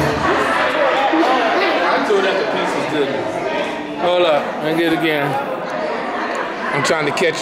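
A crowd of adults chatters and talks nearby in a large echoing hall.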